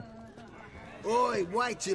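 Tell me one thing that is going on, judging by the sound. An older man speaks with animation, close by.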